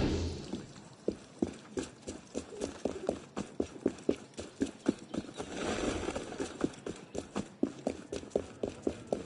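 Quick footsteps run over cobblestones.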